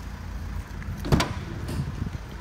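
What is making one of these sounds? A van's rear door unlatches and swings open with a clunk.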